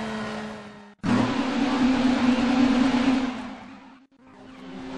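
Race car engines roar past.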